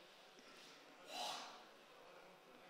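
Water squirts from a squeeze bottle.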